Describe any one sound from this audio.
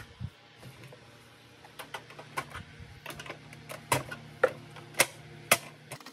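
A screwdriver scrapes against plastic.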